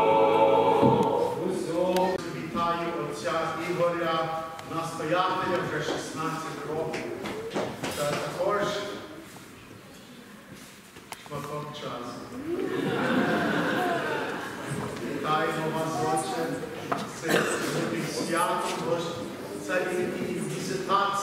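A man intones a prayer in a chanting voice.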